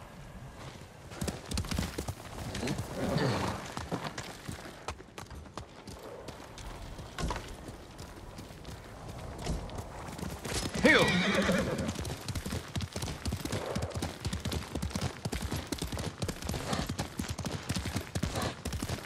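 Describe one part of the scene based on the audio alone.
A horse gallops, hooves pounding steadily on the ground.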